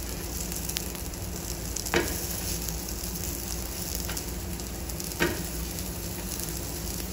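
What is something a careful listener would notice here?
Dough cakes sizzle softly on a hot pan.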